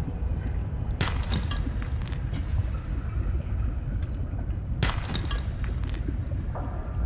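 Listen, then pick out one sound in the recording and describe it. A knife strikes rock underwater with a gritty crunch.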